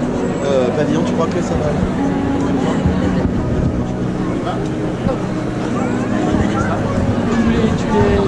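A sousaphone plays low, steady notes close by.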